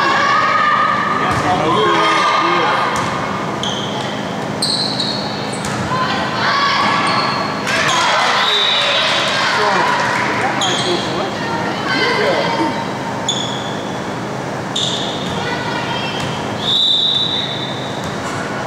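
Spectators talk and call out in an echoing gym.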